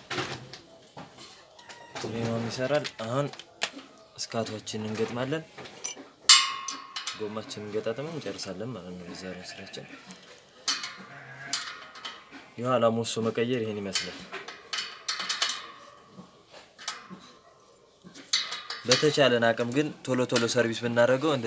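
Metal parts click and clink as a bicycle wheel hub is worked on by hand.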